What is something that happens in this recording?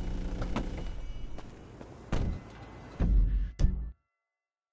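A van door opens and slams shut.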